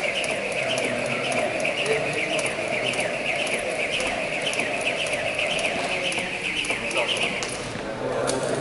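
A jump rope whips and taps the floor in a fast, steady rhythm.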